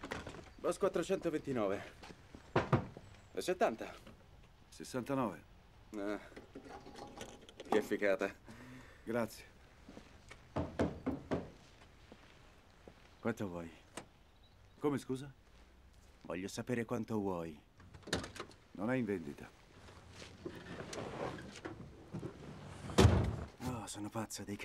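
A man answers calmly in a low voice.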